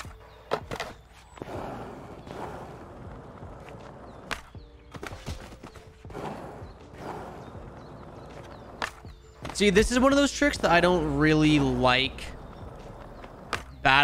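A skateboard deck snaps and clacks on landing.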